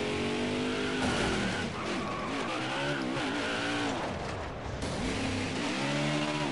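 A V8 stock car engine revs up and down as the car spins out.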